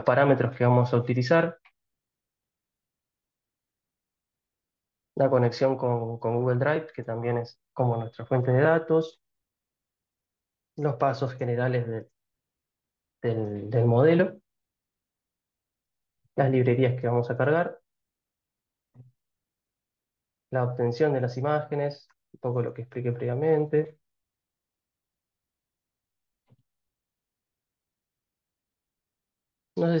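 A young man speaks calmly through a microphone in an online call, with pauses.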